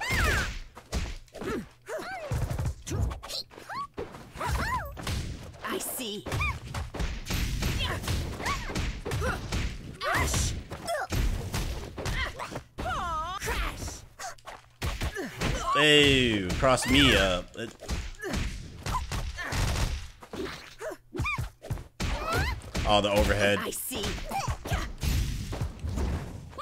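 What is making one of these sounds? Fighting game hits thump and crackle in quick bursts.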